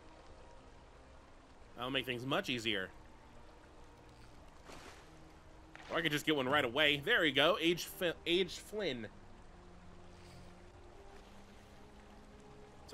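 Water laps softly.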